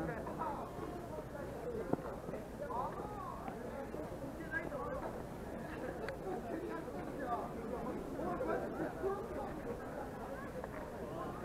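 A crowd of men and women chatter and laugh all around outdoors.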